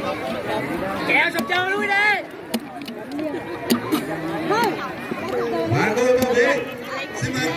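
A large crowd chatters and calls out outdoors.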